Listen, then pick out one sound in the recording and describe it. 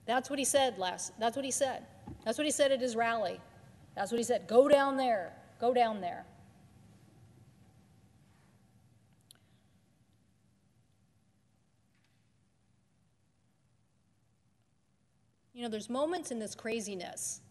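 A woman speaks firmly into a microphone.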